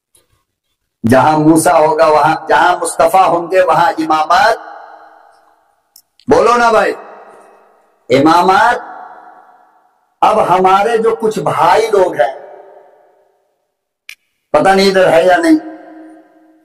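An elderly man speaks forcefully into a microphone, heard through loudspeakers with a strong echo.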